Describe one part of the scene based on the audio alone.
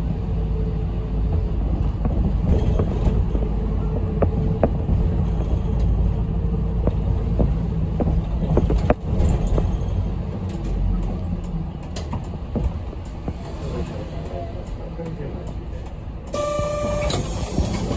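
A bus rattles and creaks over the road.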